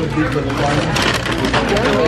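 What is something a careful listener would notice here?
A tray clatters as it is set down.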